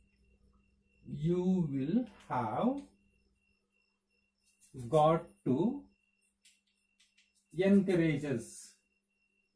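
A man speaks clearly and slowly nearby.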